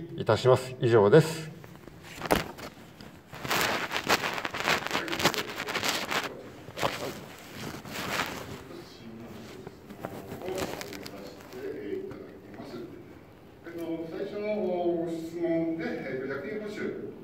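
A middle-aged man speaks calmly into a close microphone, his voice slightly muffled.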